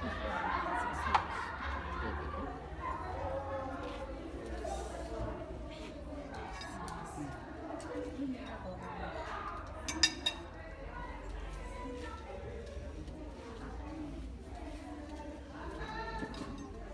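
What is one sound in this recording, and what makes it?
Several women chat nearby.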